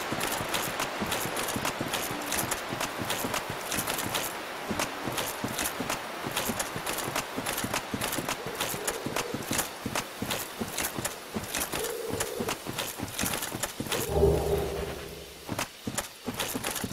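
Armored footsteps run steadily over soft ground.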